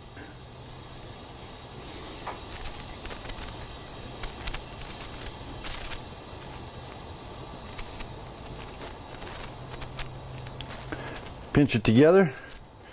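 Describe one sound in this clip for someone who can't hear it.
Soft dough crinkles and presses between fingers.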